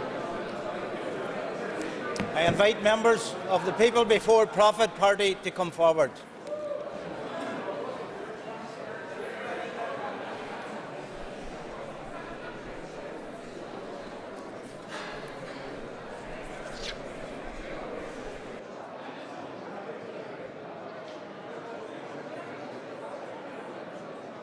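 A room full of people murmurs quietly in a large hall.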